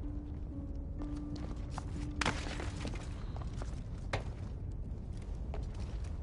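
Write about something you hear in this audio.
Footsteps land on stone.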